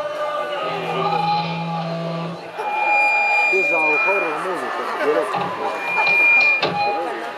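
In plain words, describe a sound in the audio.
An electric guitar plays loudly through an amplifier, with bending, wailing notes.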